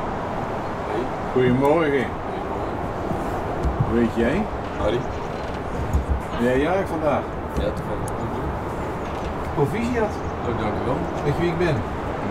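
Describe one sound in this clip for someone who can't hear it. A young man answers calmly nearby.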